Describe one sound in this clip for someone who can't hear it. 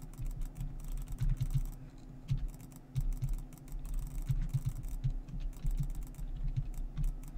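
Blocks are placed with soft, dull thuds at an uneven pace.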